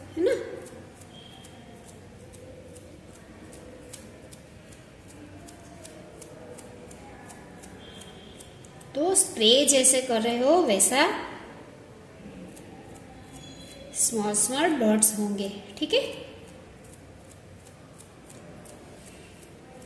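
Toothbrush bristles flick and spatter paint with quick, soft ticks.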